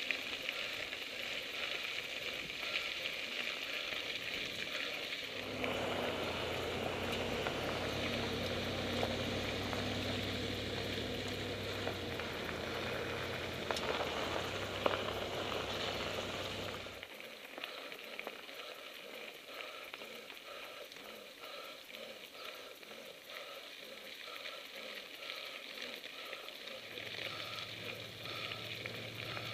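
Bicycle tyres crunch over a gravel road.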